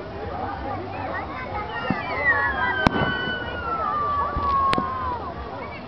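A firework rocket whistles as it shoots up.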